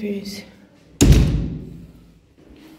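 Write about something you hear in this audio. A metal door clunks loudly.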